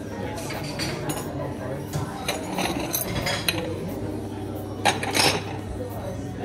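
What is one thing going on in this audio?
Cups and saucers clink on a counter.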